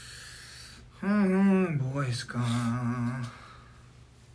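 A young man exclaims briefly close by.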